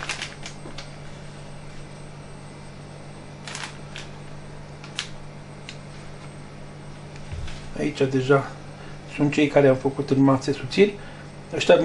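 Sausages are handled and set down on rustling paper.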